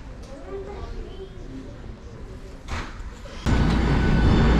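People talk quietly in a large indoor hall.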